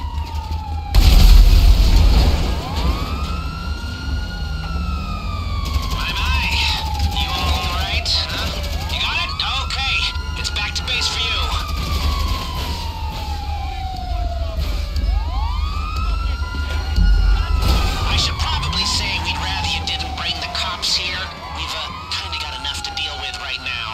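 A heavy truck engine roars as it drives off.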